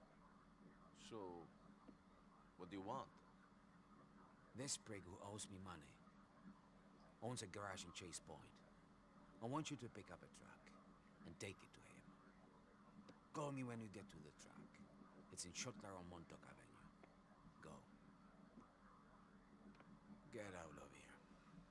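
A middle-aged man talks calmly and gruffly, close by.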